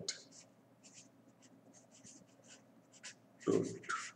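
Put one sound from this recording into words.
A marker scratches and squeaks on paper.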